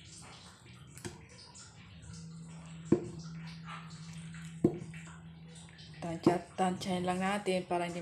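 A metal spoon scrapes and knocks against a pot while stirring.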